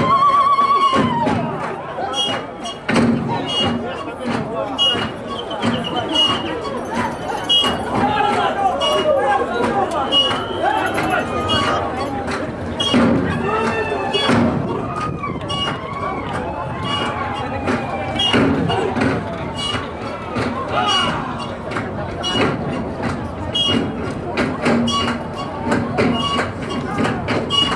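A group of men chant in time with the dance.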